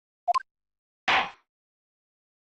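A gavel strikes once with a sharp knock.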